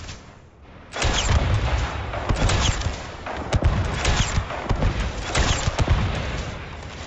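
An explosion booms with a loud roar.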